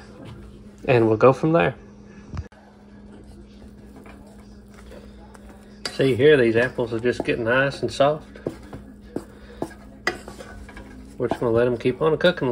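Food bubbles and sizzles in a pan.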